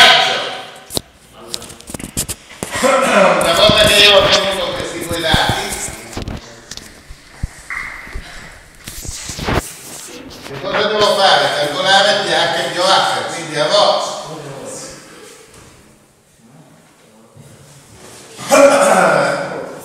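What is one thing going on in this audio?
An elderly man lectures calmly in a room with a slight echo.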